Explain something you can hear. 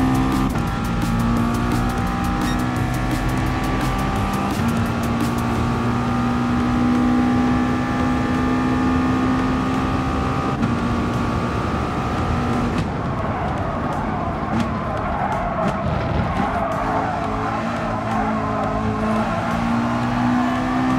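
A race car engine roars at high revs, shifting up through the gears.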